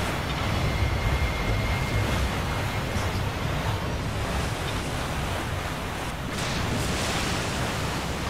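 Water splashes and churns against a boat.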